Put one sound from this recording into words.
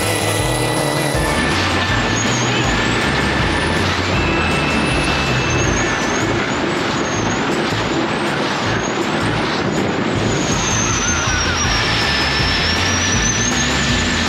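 A boat engine roars loudly at high speed.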